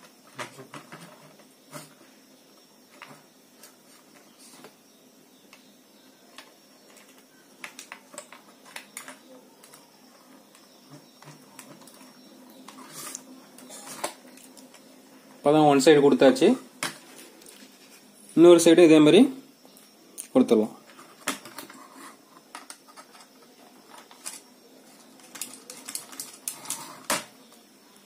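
Small clicks and taps sound as wires are fitted into electrical sockets.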